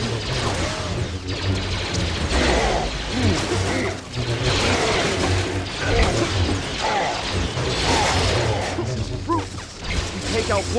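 Lightsabers hum and clash in a fight.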